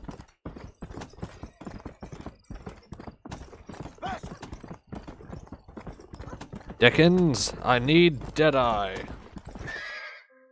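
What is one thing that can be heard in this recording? A horse's hooves clop quickly along a dirt track.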